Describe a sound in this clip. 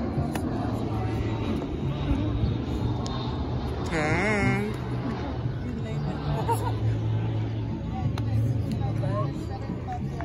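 Young women laugh and chatter close by.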